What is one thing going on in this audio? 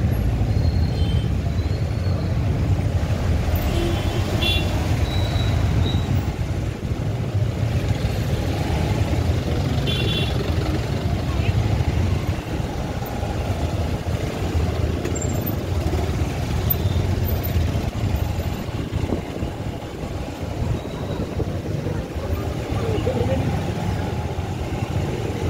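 Motorcycle and car engines idle and rumble close by in slow traffic.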